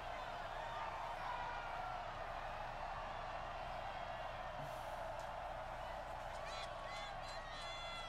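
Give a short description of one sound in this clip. A stadium crowd cheers loudly throughout.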